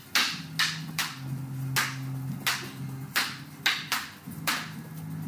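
Wooden sticks clack together sharply, over and over, in an echoing room.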